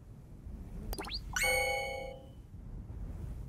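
A bright electronic chime rings out once.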